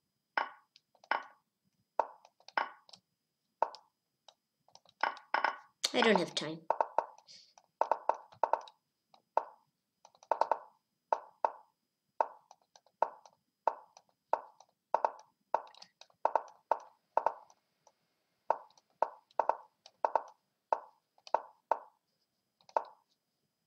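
Chess pieces clack sharply onto a board, move after move, in quick succession.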